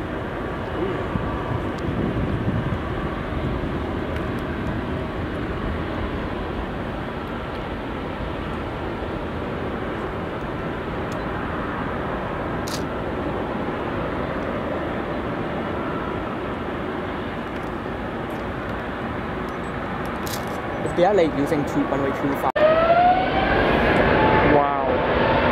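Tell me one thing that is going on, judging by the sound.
A jet airliner's engines roar steadily from a distance as it taxis.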